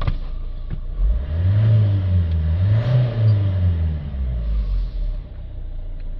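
A car engine revs up and down twice.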